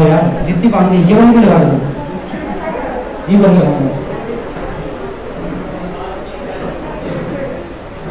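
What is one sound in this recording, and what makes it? A man speaks with animation into a microphone, heard through a loudspeaker in an echoing room.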